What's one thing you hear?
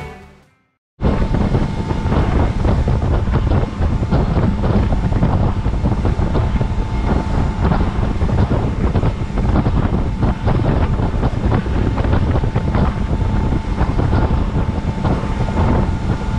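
A boat engine roars steadily at speed.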